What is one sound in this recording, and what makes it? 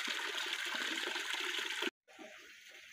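Water pours from a tap and splashes into a full basin.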